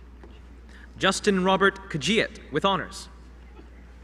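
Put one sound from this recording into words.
A young man reads out a name through a microphone in a large hall.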